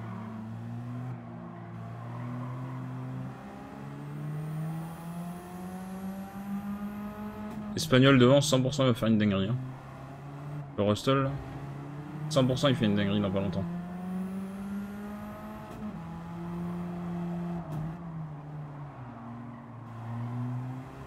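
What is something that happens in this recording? A racing car engine drones and revs steadily as it shifts gears.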